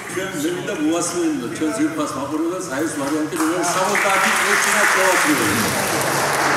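An elderly man speaks with animation into a microphone in a large echoing hall.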